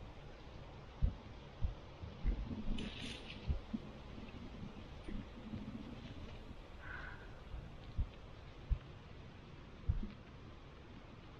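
Sunflower seeds rustle and click in a cupped hand.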